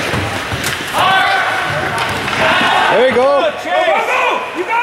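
Spectators nearby shout and cheer with excitement.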